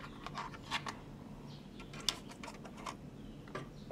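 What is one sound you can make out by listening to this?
A disc tray clatters as a disc is set in.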